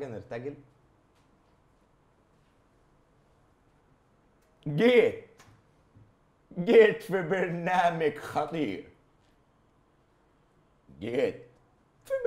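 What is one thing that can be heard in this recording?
A young man speaks with animation into a close microphone, in short bursts with pauses.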